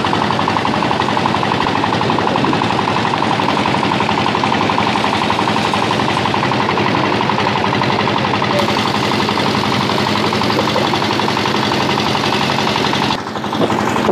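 A boat engine drones loudly and steadily close by.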